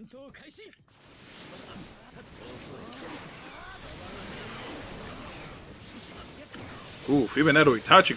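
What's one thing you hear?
Energetic blasts whoosh and crackle in a fight.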